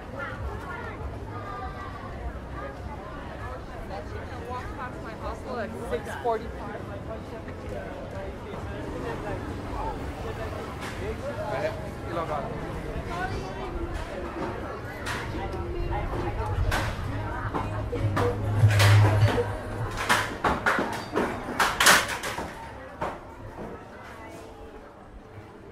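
A busy crowd murmurs and chatters outdoors.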